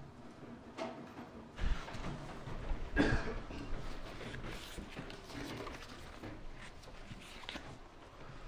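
Footsteps thud across a wooden stage.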